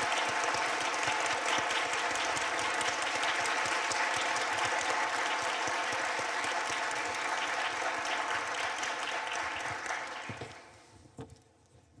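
An audience applauds in a large hall, then the applause fades.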